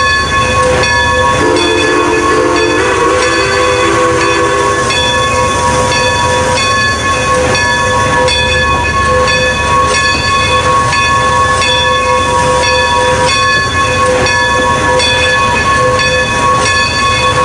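A steam locomotive chuffs slowly and rhythmically.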